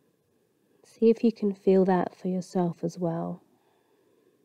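A woman speaks calmly and softly, close by.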